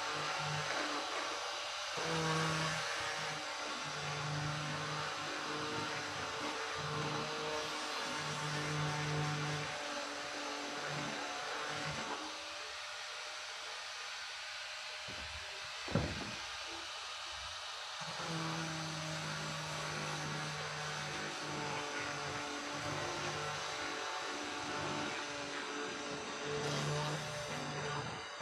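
A handheld power sander whirs steadily against wood.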